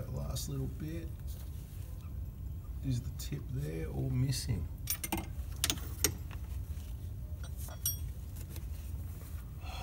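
Metal parts click and scrape as a part is unscrewed by hand.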